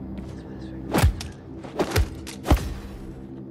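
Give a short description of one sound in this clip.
Heavy blows strike an armoured figure with dull thuds.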